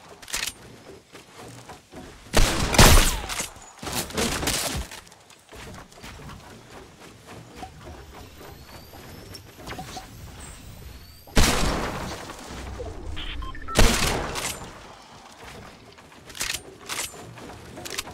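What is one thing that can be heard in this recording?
Wooden walls and ramps are built with quick knocking thuds.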